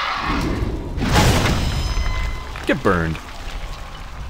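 A fiery blade crackles and whooshes as it swings through the air.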